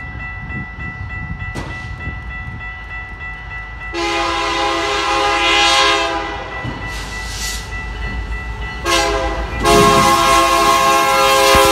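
A freight train rumbles closer along the tracks.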